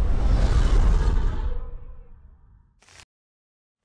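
A low, ominous rumble swells and fades.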